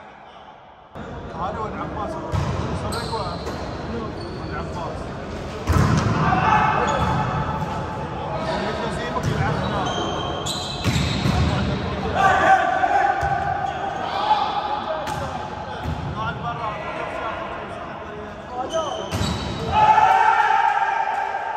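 A volleyball is struck hard, again and again, echoing in a large hall.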